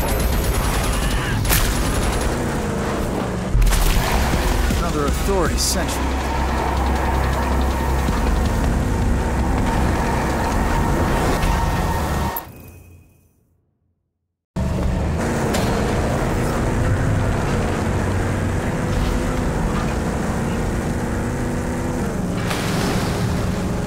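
A vehicle engine roars steadily as it drives.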